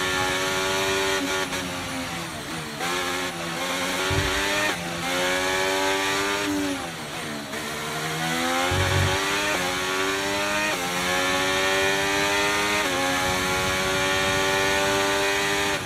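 A racing car engine screams at high revs, rising through the gears and dropping as it slows for corners.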